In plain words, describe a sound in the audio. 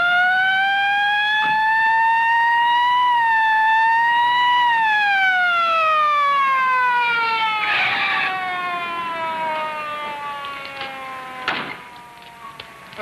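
A police siren wails, then slowly falls in pitch and fades.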